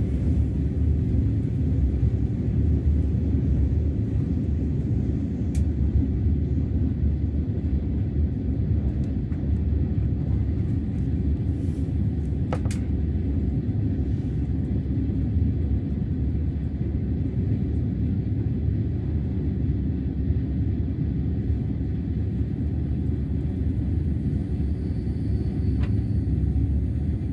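A train hums and rumbles steadily from inside a carriage.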